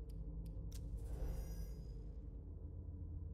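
A soft whoosh sweeps by as a menu switches.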